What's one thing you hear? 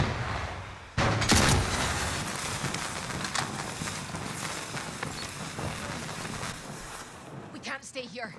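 An explosion booms nearby and its roar slowly fades.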